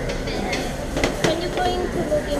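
A metal pan clatters onto a table.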